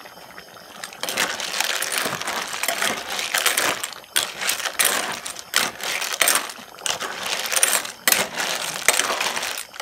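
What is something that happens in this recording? A metal ladle scrapes and clinks against a pot.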